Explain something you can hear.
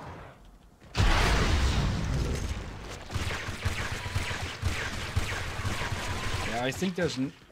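Explosions and gunfire roar loudly in a game.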